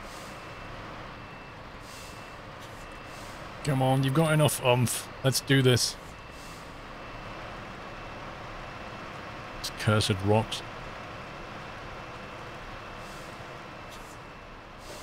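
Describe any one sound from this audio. A truck engine rumbles and strains over rough ground.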